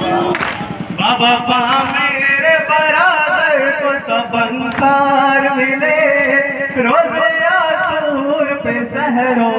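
A man sings a mournful lament through a loudspeaker.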